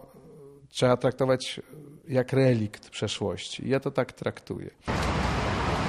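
A middle-aged man speaks calmly into a microphone up close.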